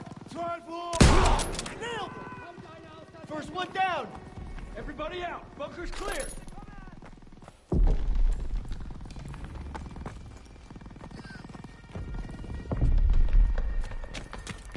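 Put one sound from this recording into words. Gunshots fire in bursts.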